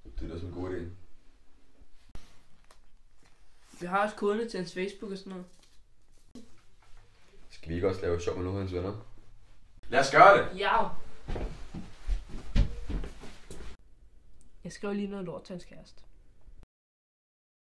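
A teenage boy talks casually close by.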